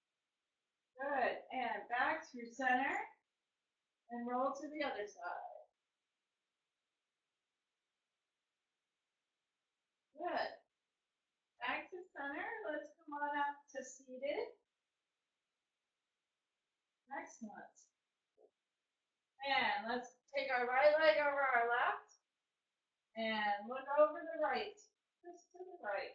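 A woman talks calmly in short phrases, close by.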